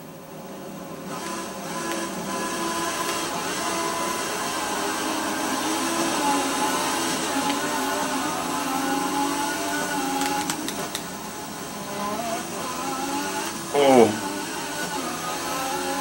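A racing car engine roars and revs up as the car speeds away.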